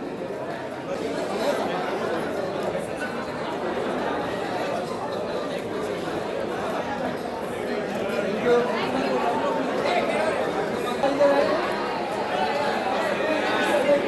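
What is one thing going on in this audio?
A crowd of men and women chatters loudly nearby.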